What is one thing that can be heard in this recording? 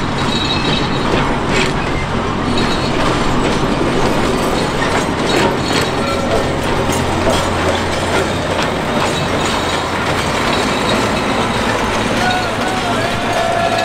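Train wheels clatter and click over the rails.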